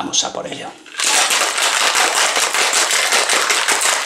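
Ice rattles rapidly inside a metal cocktail shaker being shaken.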